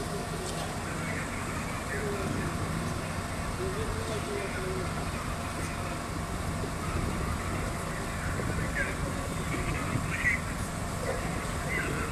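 A fire engine's motor idles with a low steady rumble.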